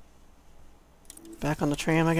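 A menu button clicks once.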